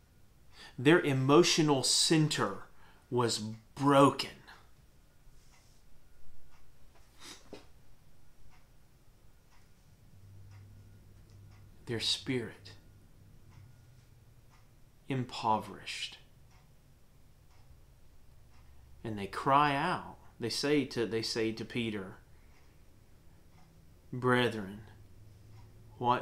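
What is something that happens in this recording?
A man speaks calmly and clearly into a nearby microphone, pausing often.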